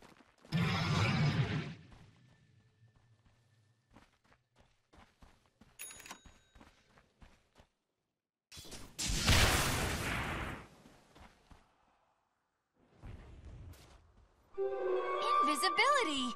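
Video game spell effects whoosh and crackle in bursts.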